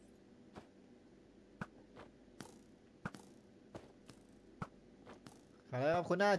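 Footsteps tap in a quick, uneven series.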